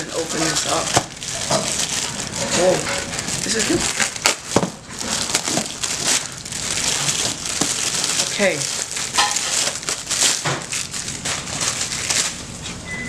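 Plastic wrapping crinkles and crackles.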